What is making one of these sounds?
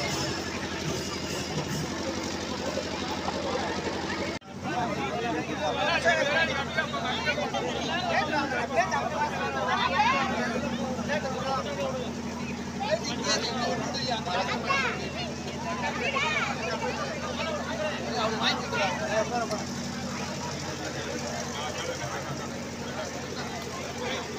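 A crowd of men and women chatter loudly all around, outdoors.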